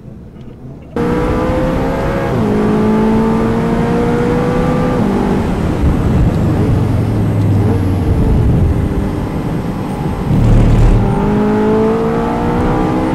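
A car engine roars as it accelerates, shifting up through the gears.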